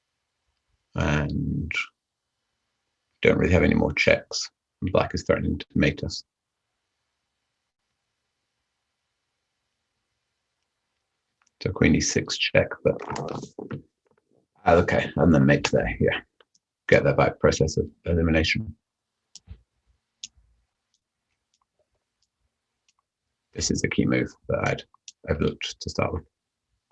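A man talks calmly and thoughtfully into a microphone, in short bursts with pauses.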